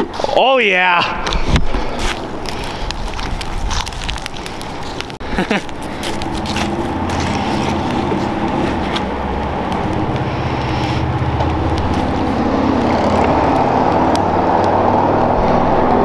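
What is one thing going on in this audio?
A fire roars and crackles outdoors.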